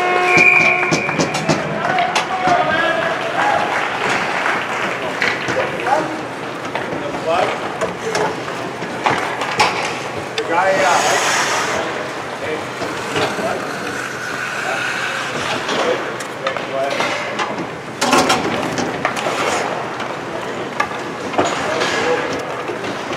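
Skates scrape and hiss across the ice.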